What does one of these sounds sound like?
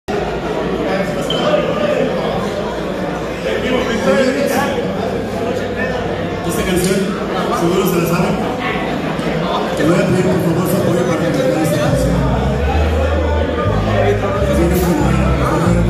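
A rock band plays loudly with electric guitars, bass and drums in an echoing room.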